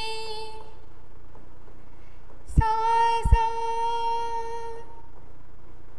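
A woman sings long, steady notes into a close microphone.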